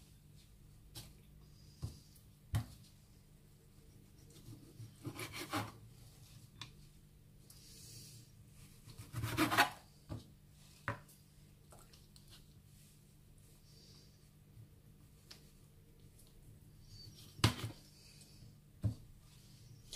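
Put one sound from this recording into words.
A knife taps and knocks on a cutting board.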